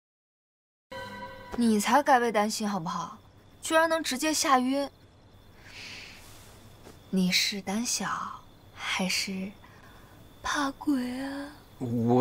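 A young woman speaks calmly, teasing, up close.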